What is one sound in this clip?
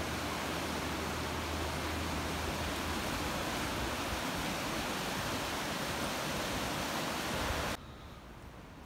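Rushing water roars steadily over rapids.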